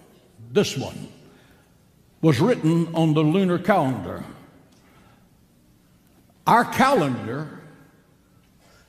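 An elderly man preaches emphatically into a microphone, with pauses between phrases.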